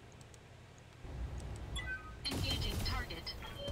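A mech's cannon fires with loud booms.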